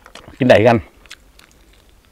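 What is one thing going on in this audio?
A man chews food close by.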